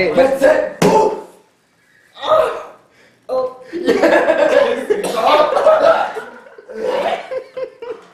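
Young men laugh loudly close by.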